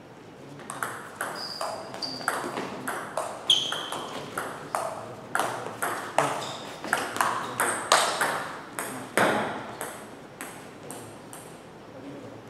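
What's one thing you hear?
A ball clicks back and forth in a fast table tennis rally, echoing in a large hall.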